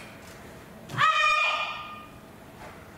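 A young woman shouts a sharp cry, heard through a loudspeaker in a large hall.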